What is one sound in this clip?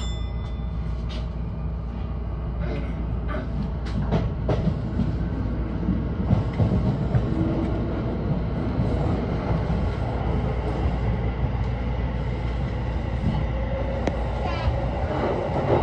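Train wheels click over rail joints.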